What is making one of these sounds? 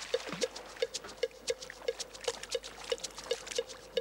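Water splashes as a fish thrashes at the edge of a raft.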